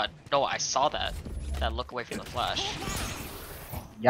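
A blinding flash bursts with a sharp whoosh.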